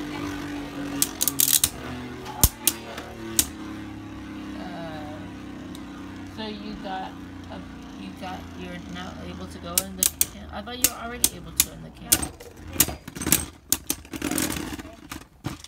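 Spinning tops clash and clack against each other.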